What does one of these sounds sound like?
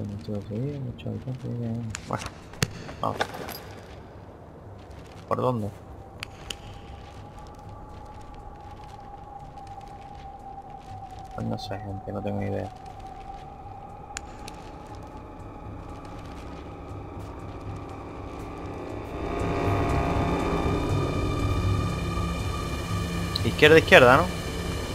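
A young man talks in bursts into a close microphone.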